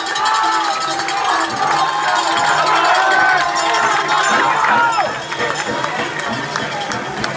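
A crowd cheers, shouts and whistles loudly outdoors.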